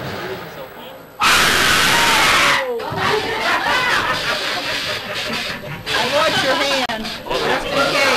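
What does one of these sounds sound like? Young women talk and exclaim excitedly close by.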